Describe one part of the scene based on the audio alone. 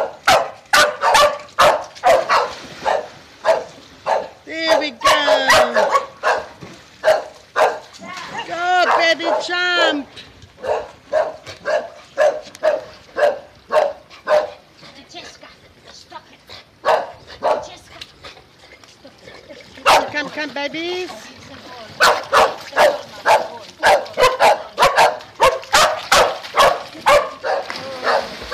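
Dogs bark sharply and repeatedly.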